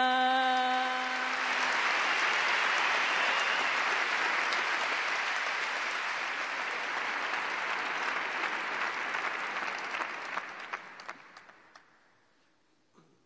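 A large crowd applauds loudly and then fades.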